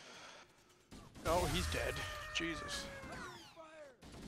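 An energy rifle fires with buzzing zaps.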